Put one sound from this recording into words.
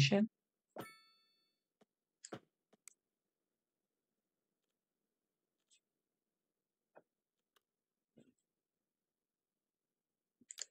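Short game interface clicks and chimes sound now and then.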